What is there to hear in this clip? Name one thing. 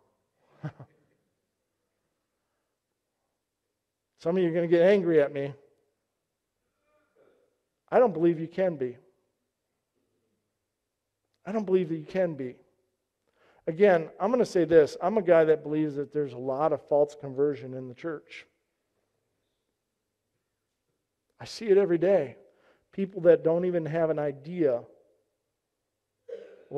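A middle-aged man speaks calmly into a microphone in bursts with pauses.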